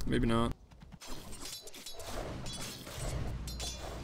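Magic spells crackle and whoosh during a fight.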